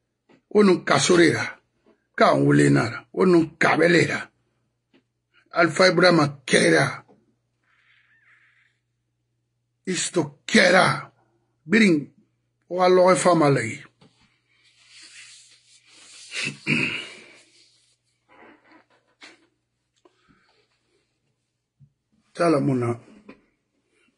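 A middle-aged man speaks emphatically and close up, in short bursts with pauses.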